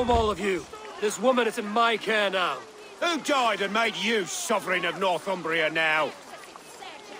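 A second man answers mockingly.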